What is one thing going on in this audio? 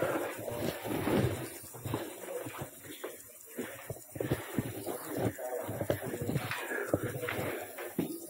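Hands and boots knock against a metal ladder during a climb.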